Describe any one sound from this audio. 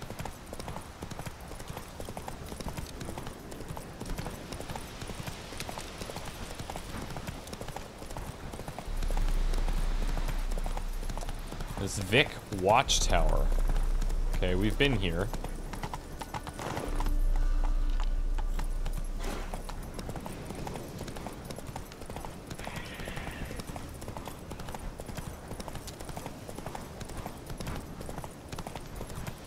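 A horse gallops, its hooves pounding on a dirt path.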